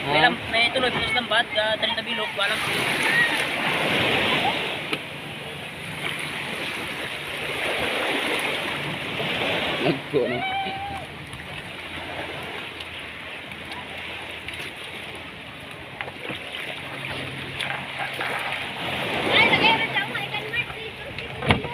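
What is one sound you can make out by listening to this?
Waves lap and splash against a wooden boat.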